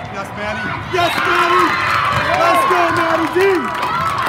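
Young women shout and cheer loudly together.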